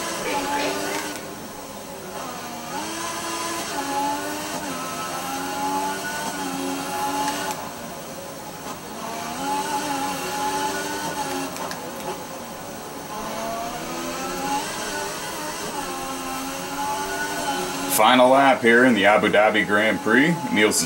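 A racing car engine whines, rising and falling in pitch as it shifts through the gears.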